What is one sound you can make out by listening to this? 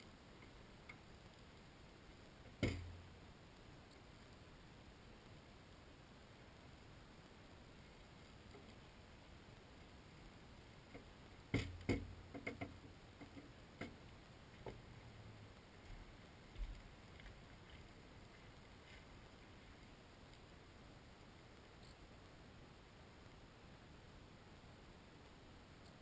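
A fire crackles and pops in a metal bucket.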